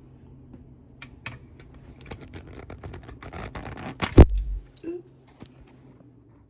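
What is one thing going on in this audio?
Fingers brush and knock against a phone held close by.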